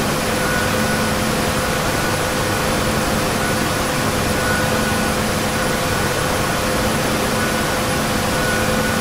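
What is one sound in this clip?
A helicopter engine hums and whines steadily.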